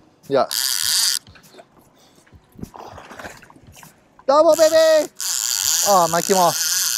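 A fishing reel's drag screams loudly as line pulls out.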